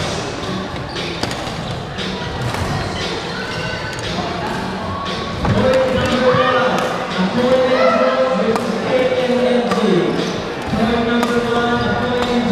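A crowd of young people chatters in the background.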